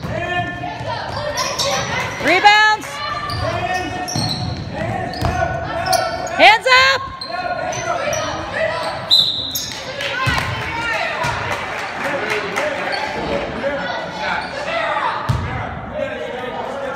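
Teenage girls shout and call out to each other in a large echoing gym.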